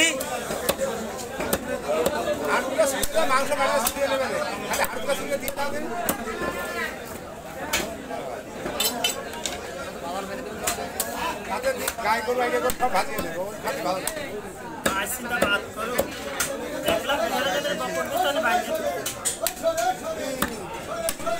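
A knife chops meat against a wooden block with sharp thuds.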